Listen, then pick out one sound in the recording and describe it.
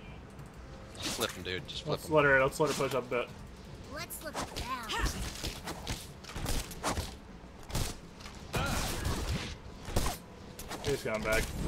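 Magic blasts and weapon strikes crackle and thud in quick bursts.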